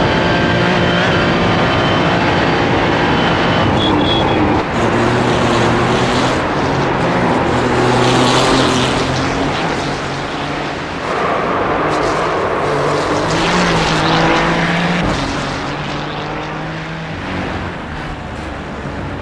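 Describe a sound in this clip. A racing car engine roars and shifts pitch as it accelerates and brakes.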